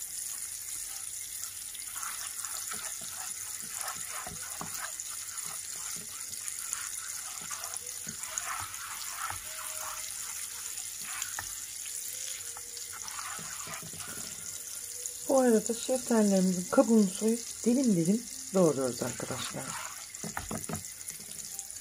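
A spatula scrapes softly against a pan.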